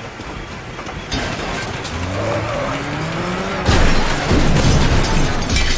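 A motorbike engine revs and whines.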